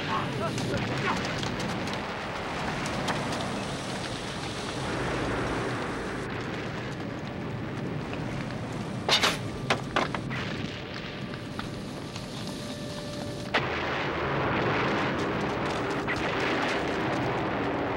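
An explosion roars.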